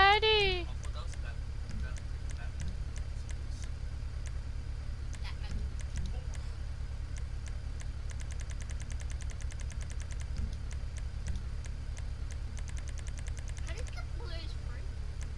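Short menu ticks click again and again as selections change.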